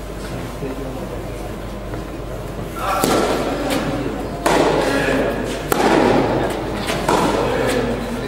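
A tennis ball is struck by rackets in a rally, echoing in a large hall.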